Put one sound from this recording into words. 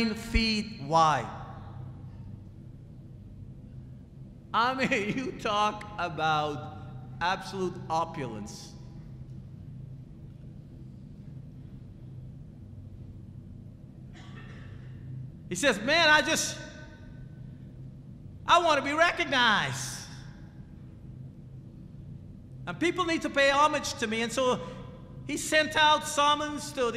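A man speaks with animation into a microphone, heard through a loudspeaker in a room, with long pauses.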